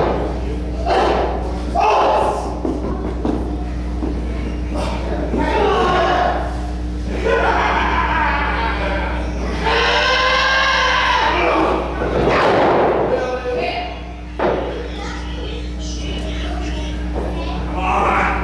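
Spectators shout and cheer close by in an echoing room.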